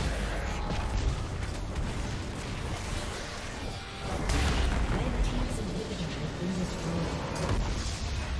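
Game spell effects and attacks crackle and thump.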